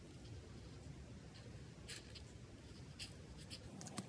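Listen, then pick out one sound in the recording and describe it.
A felt-tip marker dabs and squeaks on paper.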